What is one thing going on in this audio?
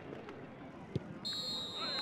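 A football is kicked with a thud.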